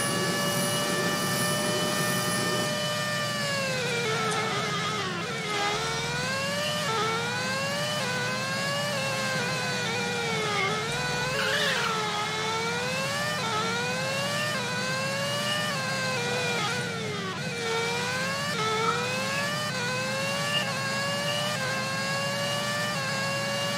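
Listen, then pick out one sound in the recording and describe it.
A racing car engine whines loudly, its pitch rising and dropping again and again as it shifts gears.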